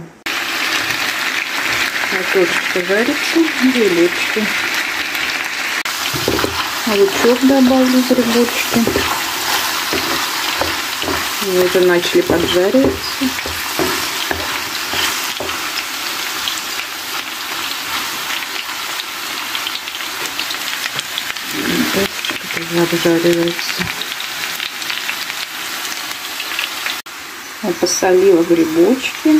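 Mushrooms sizzle in oil in a frying pan.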